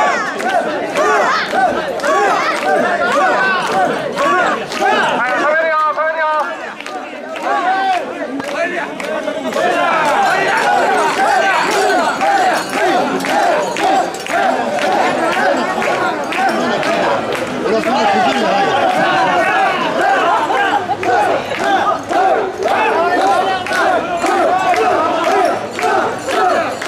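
A large crowd of men chants loudly and rhythmically outdoors.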